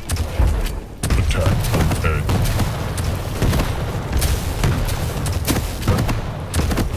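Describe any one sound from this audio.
A rapid-fire gun shoots in quick bursts.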